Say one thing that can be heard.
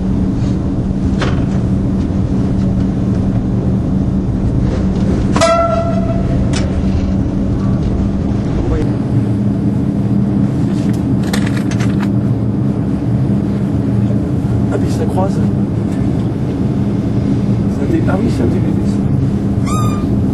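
A train's motor hums steadily as the train rolls along.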